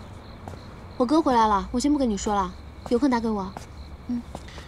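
A young woman talks on a phone nearby.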